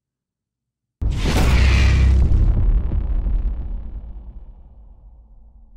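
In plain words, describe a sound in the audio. A deep explosion booms and rumbles away.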